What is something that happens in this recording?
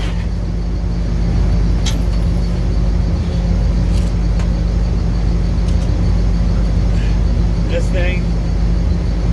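A machine hums with a steady low drone.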